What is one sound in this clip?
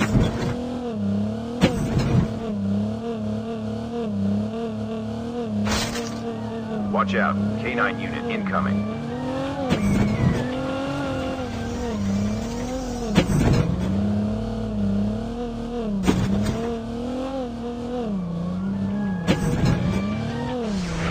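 A game car's engine hums and revs as it drives over rough ground.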